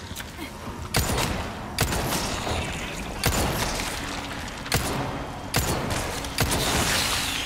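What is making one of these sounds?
Gunshots bang loudly in an enclosed space.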